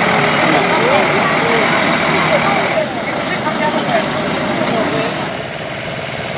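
A heavy truck engine rumbles slowly past, close by.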